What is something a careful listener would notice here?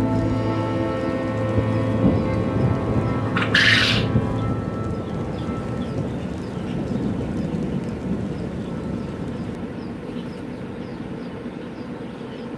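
Small caged birds chirp and peep softly throughout.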